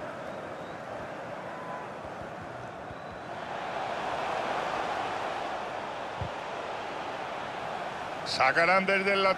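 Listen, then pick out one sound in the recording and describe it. A large stadium crowd roars steadily, swelling and easing.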